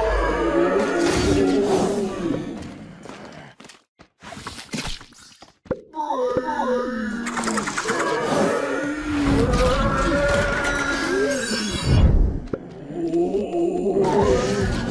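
Cartoonish battle sound effects crackle and pop.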